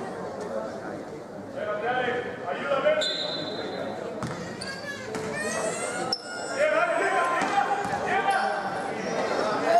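Men shout to each other across the court.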